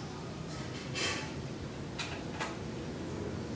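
A bicycle brake lever clicks as it is squeezed.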